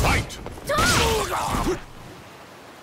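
A blade strikes with a crackling burst of energy.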